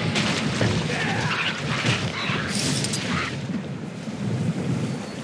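Water churns and bubbles underwater.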